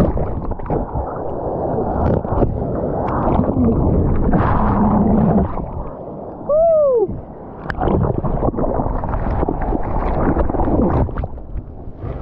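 Water churns and splashes roughly close by.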